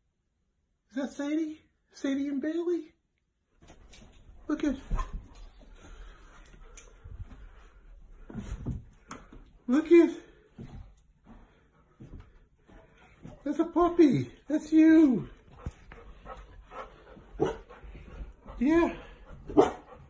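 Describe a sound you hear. A dog howls and whines in long, rising and falling cries close by.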